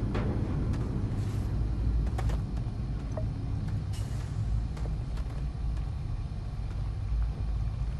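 Soft footsteps crunch slowly over debris.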